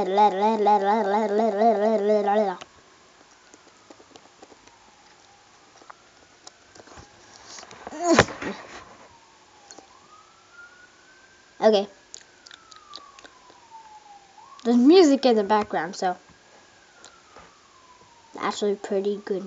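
A young girl speaks and makes playful vocal sounds in short bursts, close by.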